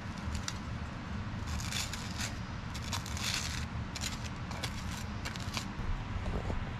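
A knife scrapes butter across toasted bread.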